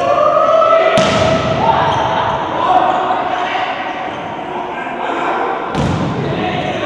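A volleyball is struck hard with a loud smack.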